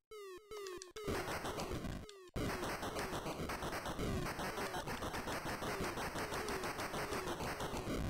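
Fast chiptune game music plays with a steady beat.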